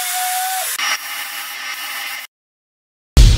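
A spray gun hisses.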